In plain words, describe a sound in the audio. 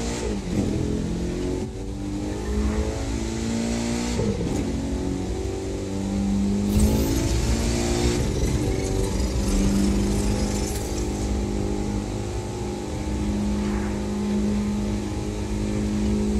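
A car engine roars loudly, rising in pitch and dropping with each gear change.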